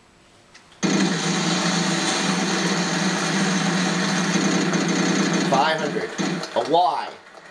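A prize wheel clicks rapidly as it spins, heard through a television speaker.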